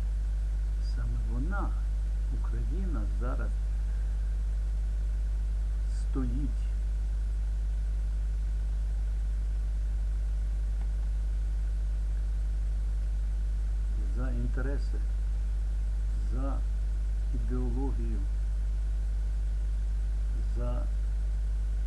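An elderly man speaks calmly and haltingly, close to a microphone.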